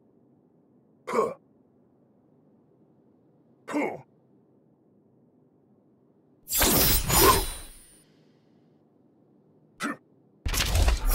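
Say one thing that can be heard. Blades whoosh sharply through the air.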